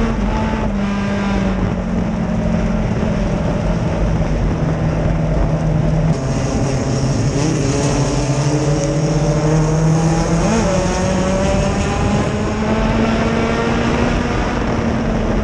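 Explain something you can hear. A race car engine roars loudly up close, its pitch rising and falling as it revs.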